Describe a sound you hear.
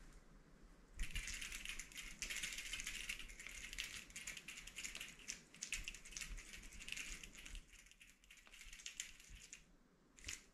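A gloved hand rubs and wipes against a surface.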